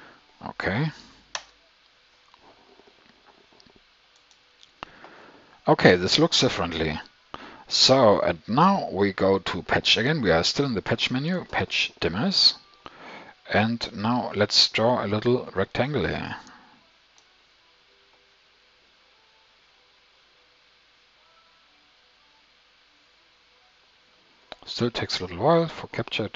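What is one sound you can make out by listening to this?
A man talks calmly into a close microphone, pausing now and then.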